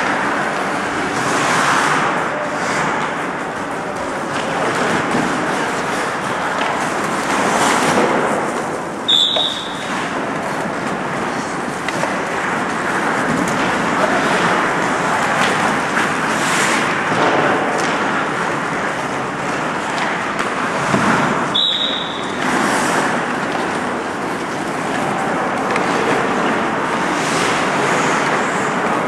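Ice hockey skates scrape and carve on ice in a large echoing arena.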